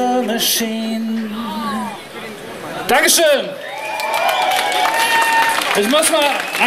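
A young man sings into a microphone, heard through loudspeakers.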